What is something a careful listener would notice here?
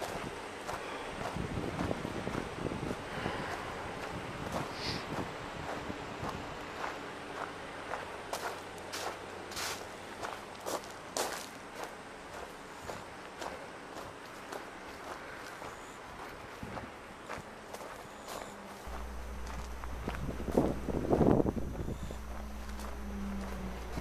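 Footsteps crunch steadily on gravel and grass outdoors.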